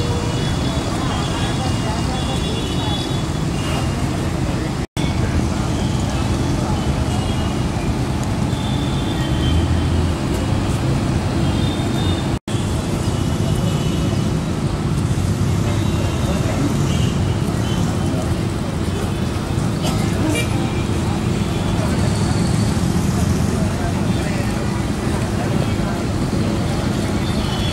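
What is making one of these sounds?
A crowd of people murmurs and chatters outdoors.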